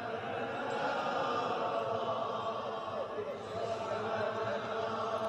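A man chants a prayer through loudspeakers in a large echoing hall.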